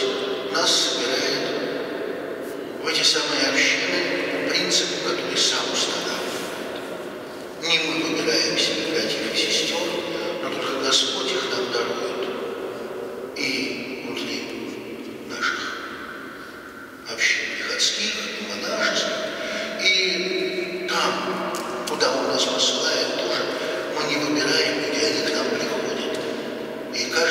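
An elderly man speaks calmly and steadily into a microphone, his voice echoing in a large hall.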